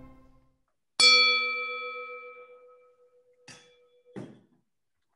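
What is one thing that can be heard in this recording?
A glass rings out with a clear chime that slowly fades.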